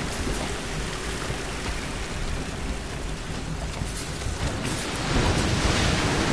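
A fire crackles and hisses nearby.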